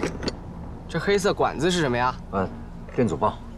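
A man asks a question calmly.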